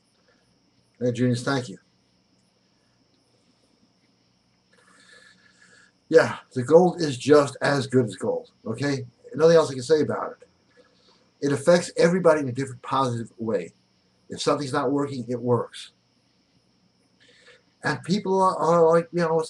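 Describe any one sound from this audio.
A middle-aged man speaks calmly into a close microphone, with pauses.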